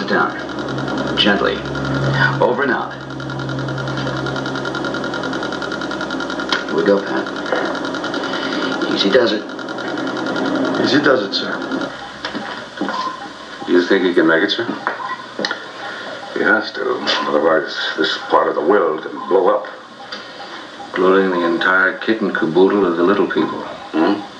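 Men talk through a television's small loudspeaker.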